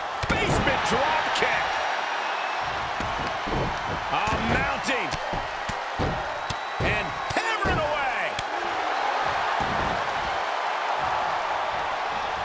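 A large arena crowd cheers and murmurs.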